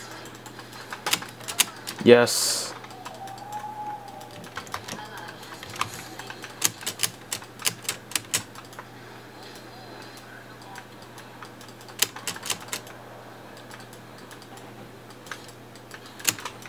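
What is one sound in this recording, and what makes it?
Short clashes and zaps of video game battle effects sound from a small speaker.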